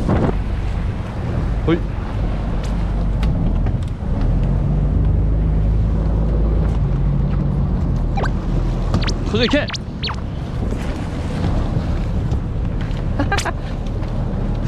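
Waves wash against rocks.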